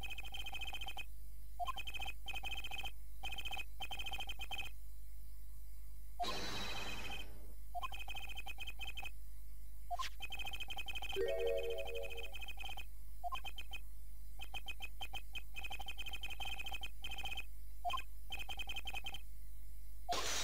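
Rapid electronic beeps chatter as game text scrolls.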